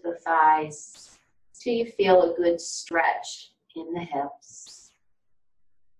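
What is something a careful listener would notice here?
An older woman speaks calmly and clearly to the listener, close to a microphone.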